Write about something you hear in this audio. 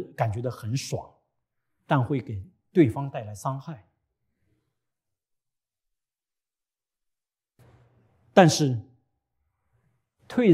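A man speaks calmly through a microphone in a large room, pausing between phrases.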